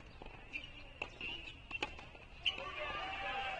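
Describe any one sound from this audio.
A tennis ball bounces a few times on a hard court.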